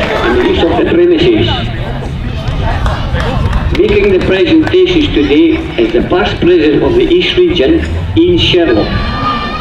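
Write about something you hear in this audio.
A group of men chant and sing together outdoors.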